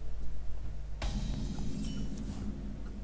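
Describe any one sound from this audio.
A short game chime sounds as a new turn begins.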